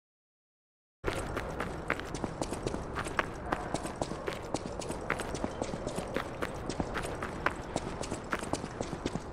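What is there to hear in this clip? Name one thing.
Footsteps crunch quickly on loose gravel and rock.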